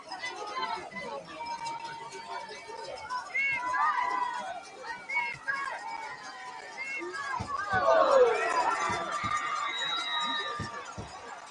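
A crowd of players and spectators shouts and cheers outdoors.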